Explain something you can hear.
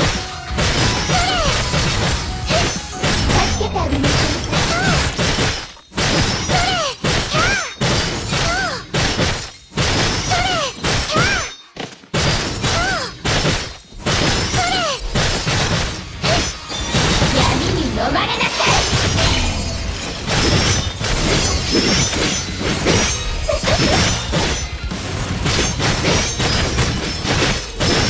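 Blades slash and strike in quick succession.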